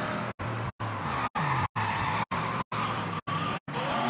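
Car tyres screech during a sharp turn.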